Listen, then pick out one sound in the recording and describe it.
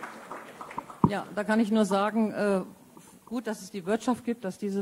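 A woman speaks calmly into a microphone, heard over loudspeakers in an echoing hall.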